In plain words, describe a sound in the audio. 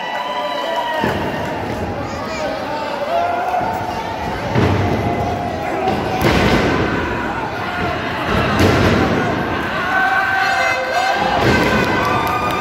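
Wrestlers thud heavily onto the ring mat.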